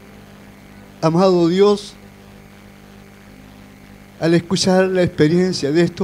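A middle-aged man speaks with feeling into a microphone, heard through loudspeakers.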